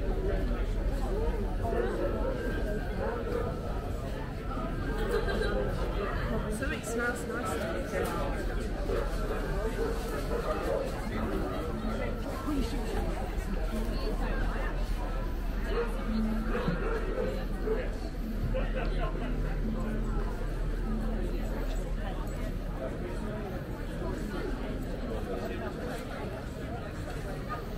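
A crowd of people chatter outdoors, with many voices mixing.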